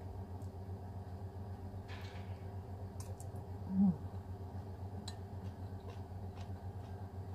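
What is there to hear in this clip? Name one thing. A woman chews food with her mouth close to a microphone.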